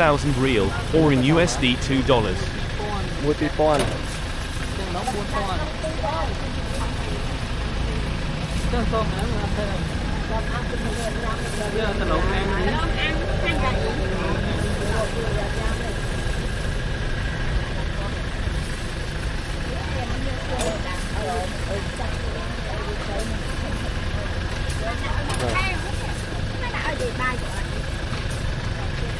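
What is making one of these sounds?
Several women talk nearby outdoors.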